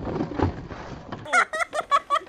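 Skateboard wheels rumble over pavement.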